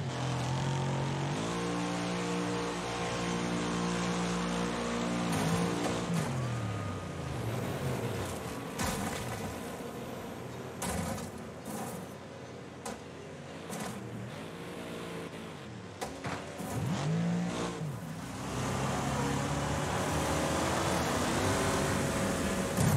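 A car engine roars at high revs and changes pitch as gears shift.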